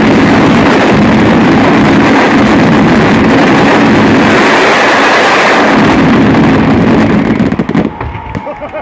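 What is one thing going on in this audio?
Fireworks roar and hiss loudly close by.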